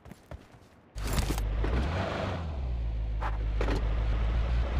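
A car engine starts and runs with a low rumble.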